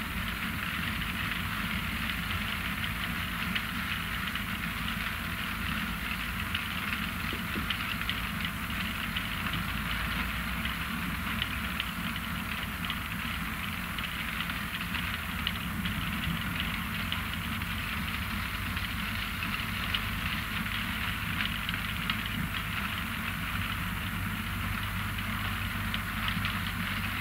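Beets rattle and clatter along a conveyor.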